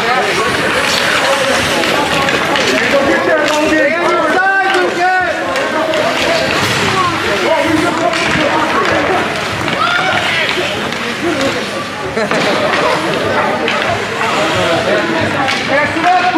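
Hockey sticks clack against the ice and a puck.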